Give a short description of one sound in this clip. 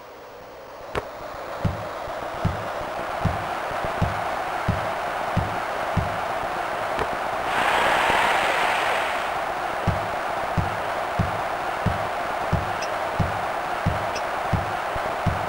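A crowd roars, swelling loudly for a moment.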